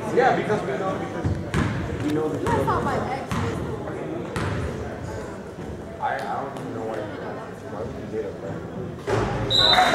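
Young men's voices call out across an echoing gym.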